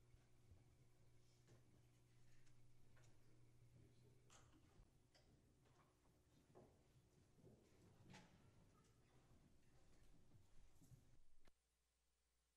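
Footsteps tap across a wooden floor.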